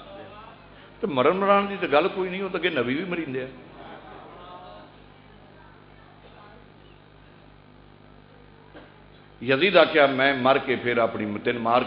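A man chants melodically through a loudspeaker in a large echoing hall.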